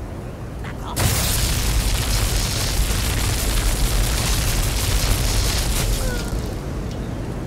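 Crackling electricity sizzles and buzzes loudly.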